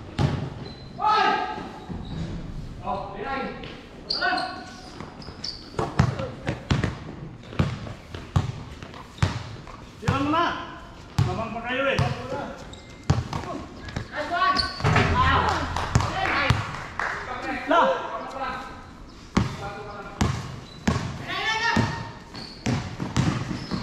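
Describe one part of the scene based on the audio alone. Men call out to each other loudly during a game.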